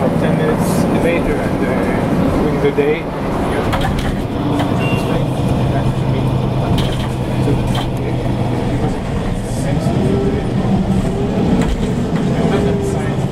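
A bus engine rumbles steadily while riding.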